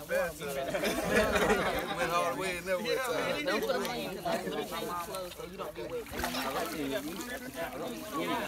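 Water splashes and sloshes in a pool.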